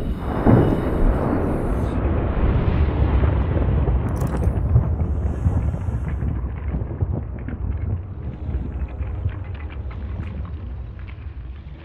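A low underwater rumble surrounds a swimming diver.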